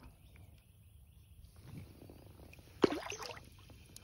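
A fish splashes in water.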